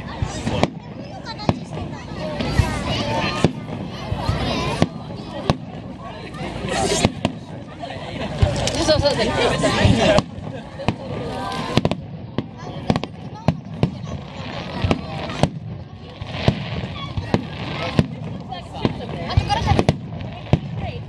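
Fireworks burst with sharp, booming bangs, one after another.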